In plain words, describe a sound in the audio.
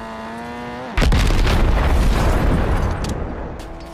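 A window pane shatters.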